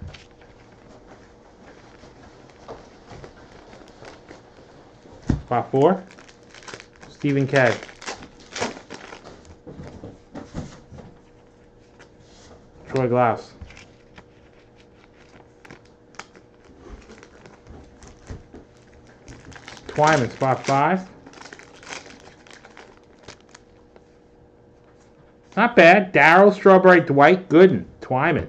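Plastic card sleeves crinkle and rustle in hands.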